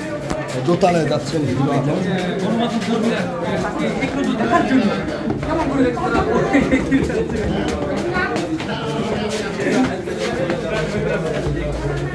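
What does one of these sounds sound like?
Footsteps shuffle and climb stairs.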